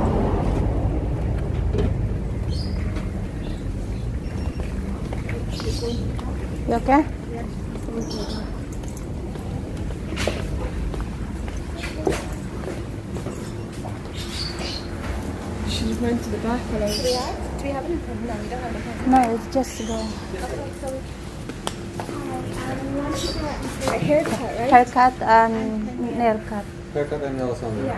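A low, steady hum of a crowded indoor space goes on.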